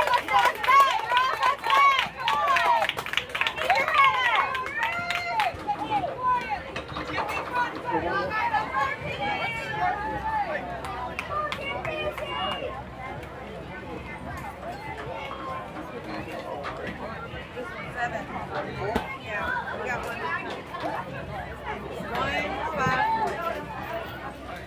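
Young girls shout and cheer loudly nearby, outdoors.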